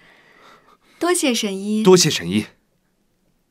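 A young man says thanks warmly, close by.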